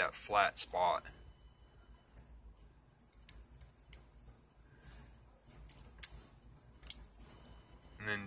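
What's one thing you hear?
A thin metal pick clicks and scrapes inside a small lock.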